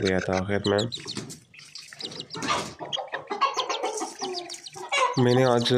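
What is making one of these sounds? A hen clucks close by.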